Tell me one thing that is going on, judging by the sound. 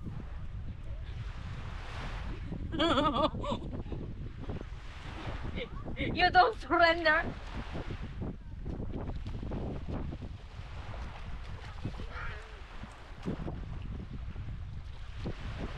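Small waves lap and wash onto the shore.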